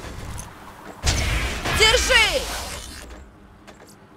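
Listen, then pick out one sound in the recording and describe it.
An energy blast crackles and whooshes.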